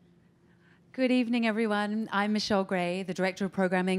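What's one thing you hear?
A woman speaks into a microphone over loudspeakers in a hall.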